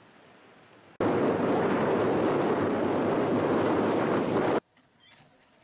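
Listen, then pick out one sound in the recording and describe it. Wind-driven waves wash onto a stony lake shore.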